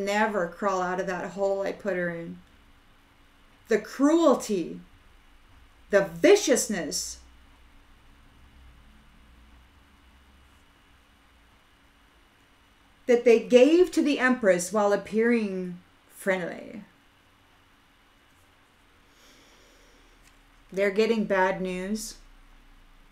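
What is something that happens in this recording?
A middle-aged woman speaks calmly and close to a microphone, in short bursts with pauses.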